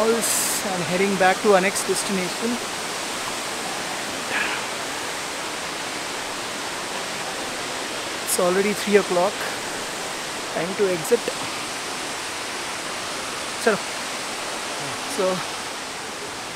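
A man talks close to the microphone, in short bursts.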